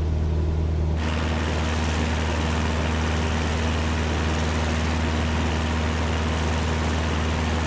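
A small propeller plane's engine drones steadily with rushing wind, heard from outside.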